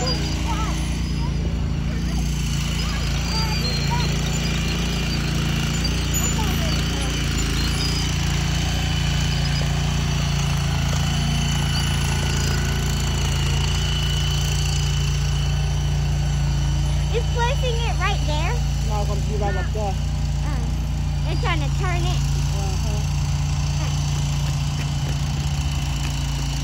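A small engine hums steadily and drones nearby.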